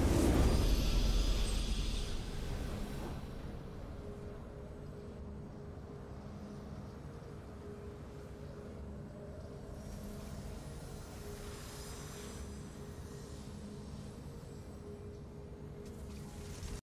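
A triumphant game fanfare swells and fades into soft, steady music.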